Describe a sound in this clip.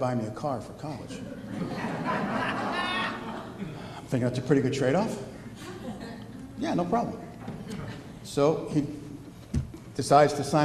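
A middle-aged man speaks calmly into a microphone, heard through a loudspeaker in an echoing hall.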